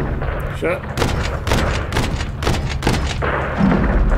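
Heavy explosions boom in quick succession.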